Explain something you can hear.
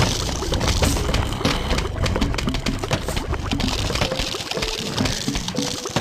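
Cartoon peas pop and splat rapidly in a video game.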